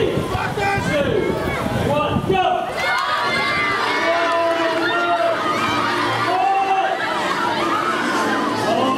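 A large crowd outdoors cheers and shouts.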